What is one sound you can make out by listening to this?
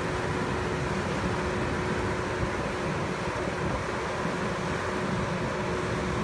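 A combine harvester's engine rumbles steadily close by.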